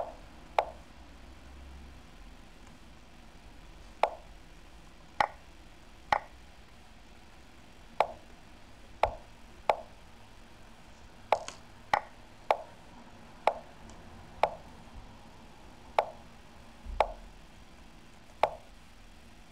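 Short wooden clicks sound as chess pieces are moved.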